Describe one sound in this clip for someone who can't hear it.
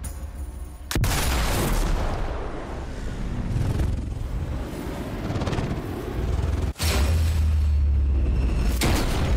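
A bullet whooshes through the air.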